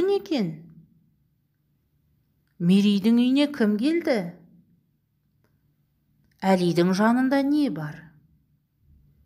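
A woman reads aloud clearly into a close microphone, in short phrases with pauses.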